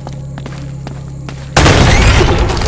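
A gunshot fires.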